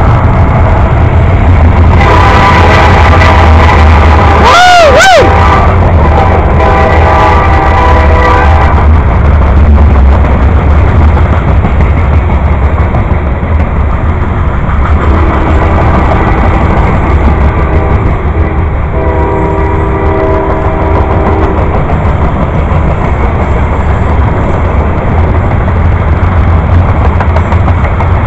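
Train wheels clack over the rail joints.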